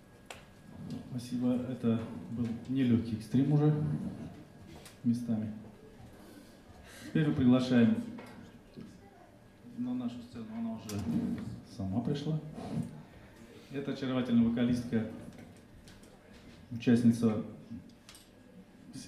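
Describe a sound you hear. A man speaks calmly into a microphone over a loudspeaker.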